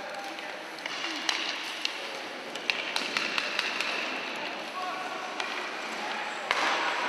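Sled blades scrape across the ice.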